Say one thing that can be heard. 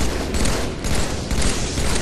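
A rifle fires in a video game.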